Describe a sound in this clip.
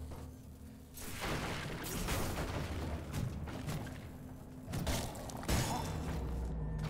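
Heavy blades slash and strike in a fast fight.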